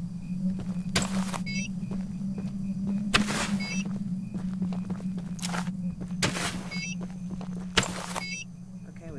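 A small charge clicks and clunks as it is fixed to a wooden post.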